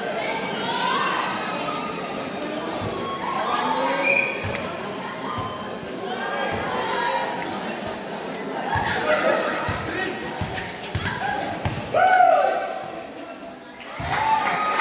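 A large crowd chatters and shouts in an open-air court.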